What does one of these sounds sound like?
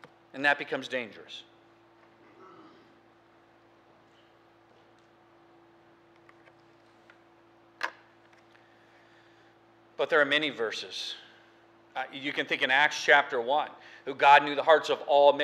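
A middle-aged man speaks with emphasis through a microphone, pausing between phrases.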